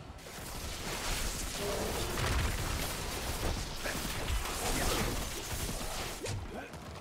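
Heavy blows thud and crash in a fierce fight.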